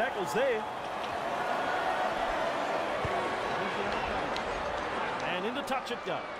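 A large stadium crowd roars.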